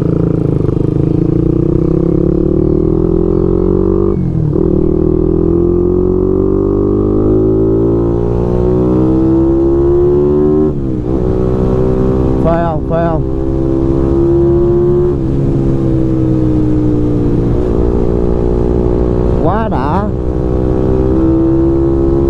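A motorcycle engine roars loudly up close, revving up and dropping as it shifts gears.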